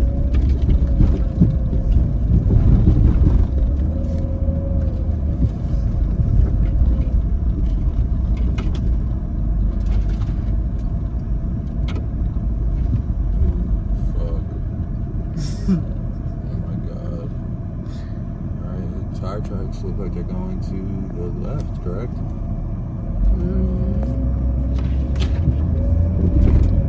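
A vehicle engine rumbles steadily while driving over a rough dirt track.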